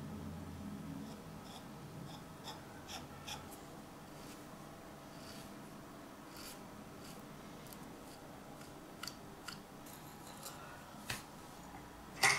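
A small brush dabs and scrapes paint.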